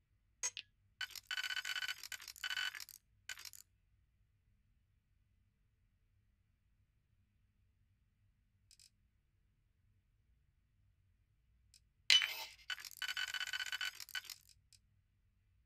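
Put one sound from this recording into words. A high electronic whirring buzz comes in bursts.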